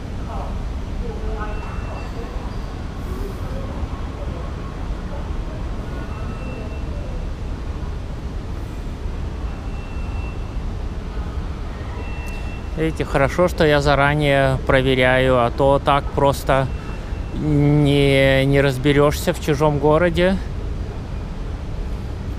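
Distant voices murmur and echo in a large hall.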